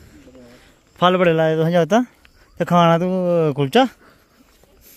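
A young boy speaks loudly and with animation close by.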